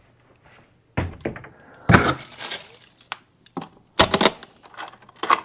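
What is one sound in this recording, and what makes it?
Heavy objects knock and clunk against a freezer.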